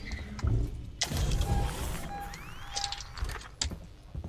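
A heavy sliding door opens with a loud mechanical hiss.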